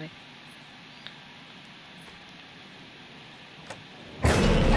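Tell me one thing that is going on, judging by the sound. A doorknob rattles and clicks.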